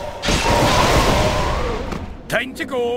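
A magic spell bursts with a loud crackling whoosh.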